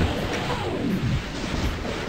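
A monster growls.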